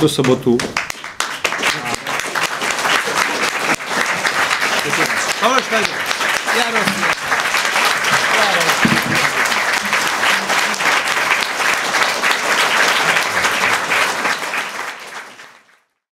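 An audience applauds loudly and steadily in a hall.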